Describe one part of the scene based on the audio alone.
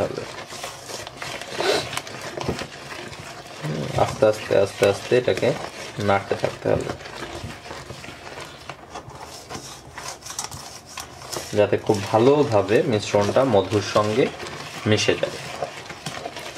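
A metal spoon scrapes and clinks against a metal bowl.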